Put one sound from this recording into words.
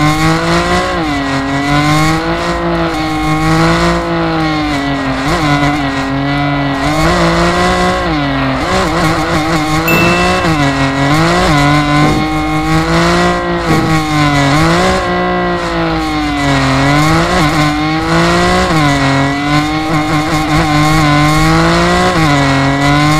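A car engine revs hard, its pitch rising and falling with each drift.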